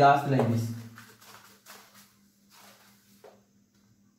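An eraser wipes across a whiteboard.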